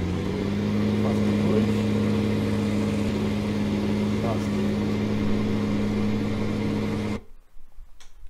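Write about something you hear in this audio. A tractor engine drones steadily and then cuts off.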